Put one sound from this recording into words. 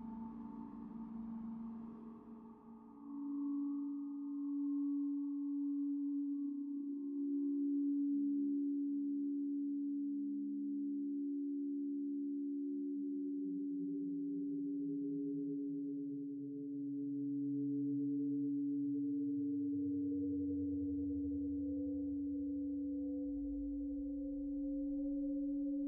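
A synthesizer drones with a steady low tone while deep notes slowly slide downward.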